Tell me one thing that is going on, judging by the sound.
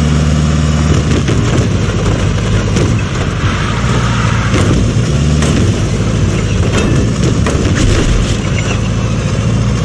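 Tyres skid and crunch over snow.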